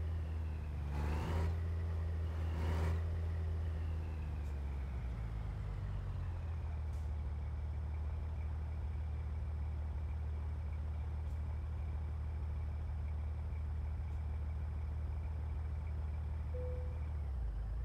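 A truck's diesel engine idles with a low, steady rumble.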